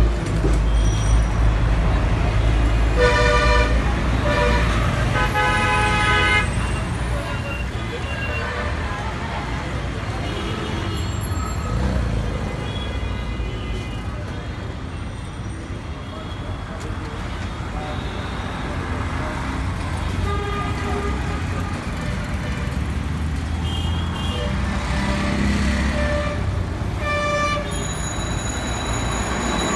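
Outdoor street traffic rumbles steadily.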